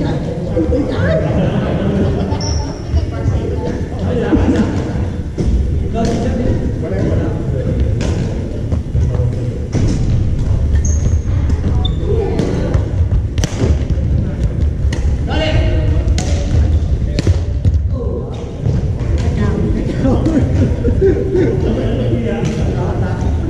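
Many young people chatter, echoing in a large hall.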